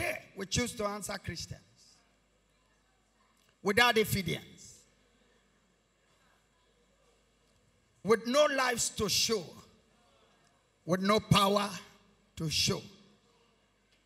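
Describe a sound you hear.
A man preaches forcefully into a microphone in short bursts, with pauses between phrases.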